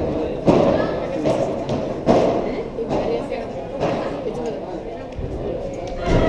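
Padel balls bounce on the court and thud against the walls.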